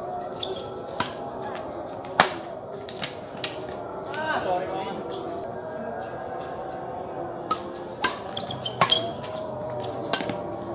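Rackets strike a shuttlecock with sharp snaps in a rally.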